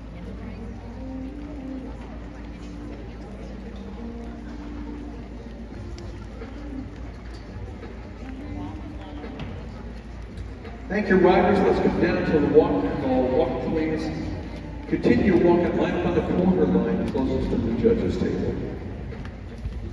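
Horses' hooves thud softly on soft dirt.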